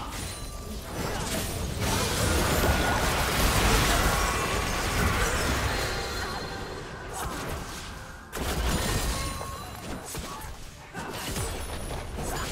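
Spell effects crackle and blast during a game battle.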